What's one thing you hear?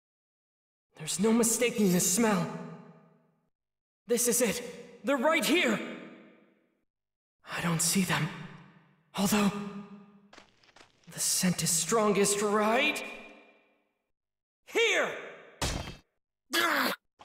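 A young man speaks in short, urgent bursts.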